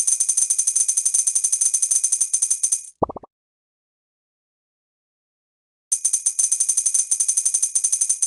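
Rapid bright chimes tick as game coins are collected.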